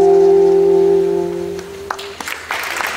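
A small jazz band with saxophones and a trombone holds a loud final chord, then stops.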